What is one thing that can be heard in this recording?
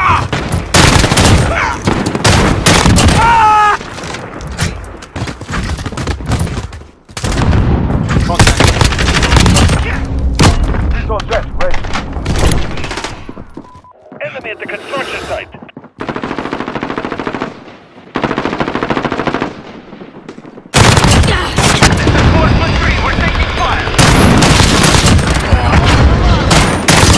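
Rifles fire in rapid, loud bursts.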